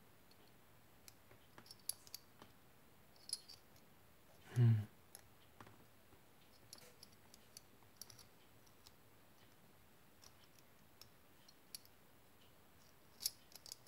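Metal pieces of a puzzle click and scrape softly against each other.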